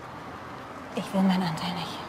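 A woman speaks nearby in a tense voice.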